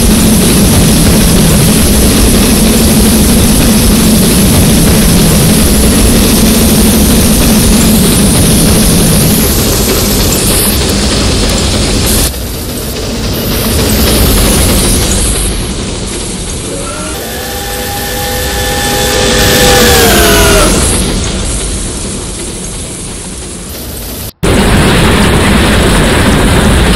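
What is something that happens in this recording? A steam locomotive chugs and hisses steadily.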